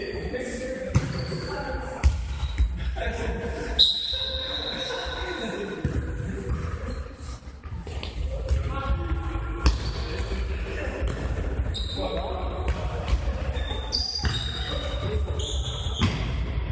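A ball thumps off players' feet and bounces on a hard floor in a large echoing hall.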